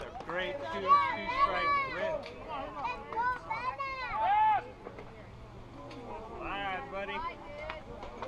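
Children shout and cheer across an open field.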